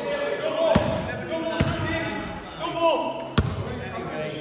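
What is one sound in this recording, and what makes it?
A basketball bounces hard on a court floor in an echoing hall.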